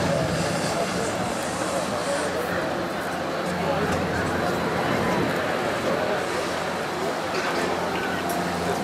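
A V12 supercar engine rumbles at low revs as the car rolls slowly past.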